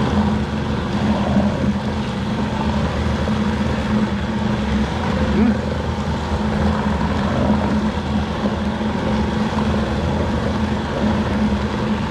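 A meat mixing machine hums and whirs steadily.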